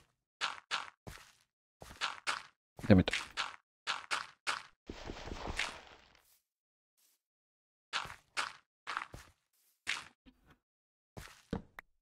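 A block of earth is placed with a soft thud.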